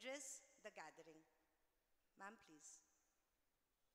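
A woman speaks with animation into a microphone, heard over a loudspeaker in a hall.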